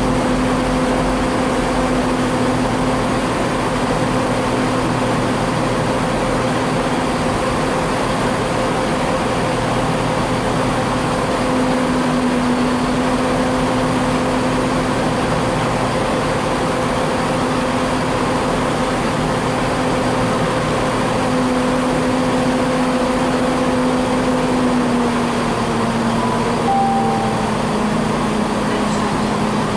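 A diesel train engine hums steadily as the train rolls past close by.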